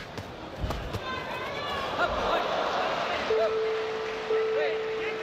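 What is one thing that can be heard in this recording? A crowd in a large hall cheers and roars.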